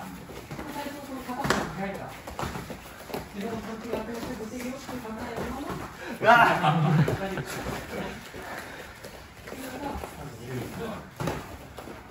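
A young man talks and laughs nearby.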